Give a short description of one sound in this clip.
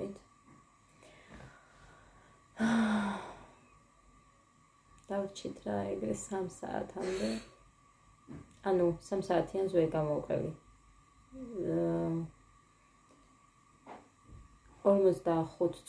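A young woman talks calmly and close by, with pauses.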